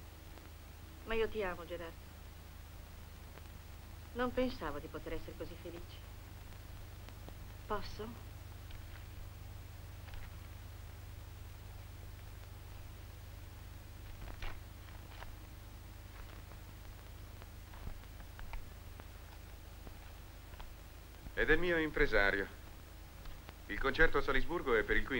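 A man speaks quietly in reply nearby.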